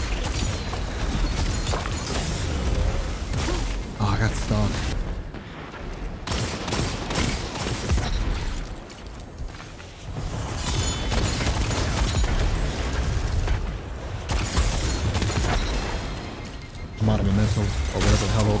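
Gunfire rings out in rapid bursts.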